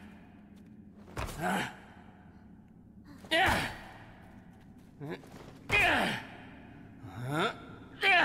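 A young boy gasps and cries out in fright.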